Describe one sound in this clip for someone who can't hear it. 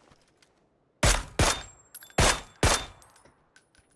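Rifle shots crack loudly in quick succession.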